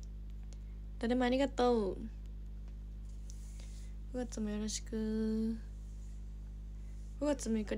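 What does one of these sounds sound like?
A young woman speaks softly and close to a microphone, in short bursts.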